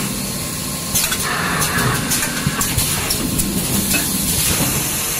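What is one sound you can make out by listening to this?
Mechanical parts click and clack as a machine arm moves.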